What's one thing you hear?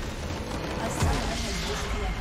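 A loud game explosion booms.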